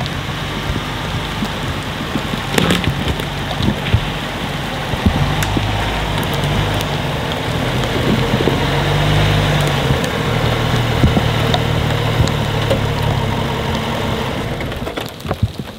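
A car engine rumbles as the car drives slowly closer.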